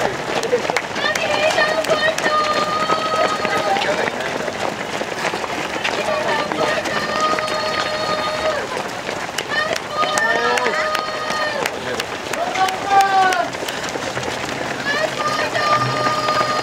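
Spectators clap their hands.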